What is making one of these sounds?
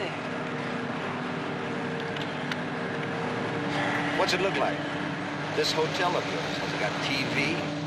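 A car engine hums steadily while driving on a road.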